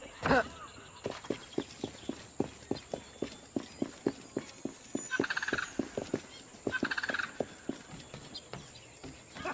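Quick footsteps patter on wooden boards and stone.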